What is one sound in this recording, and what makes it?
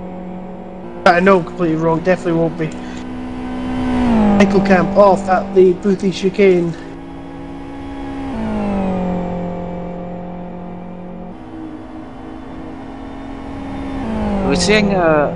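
A racing car engine blips sharply as gears shift down.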